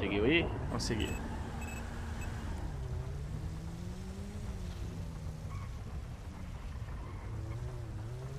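A car engine hums and revs as the car drives.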